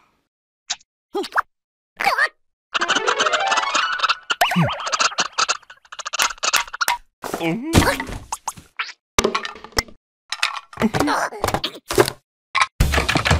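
A man babbles excitedly in a high, squeaky cartoon voice.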